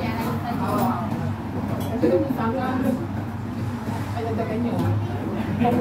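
Women talk nearby in a lively conversation.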